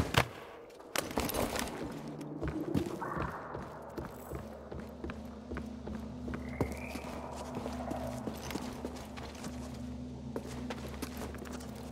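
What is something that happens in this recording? Footsteps scrape and tap on rock.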